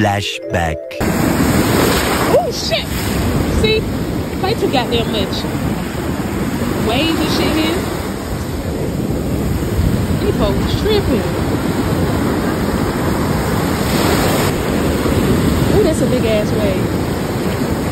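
Ocean waves rush and foam onto the shore.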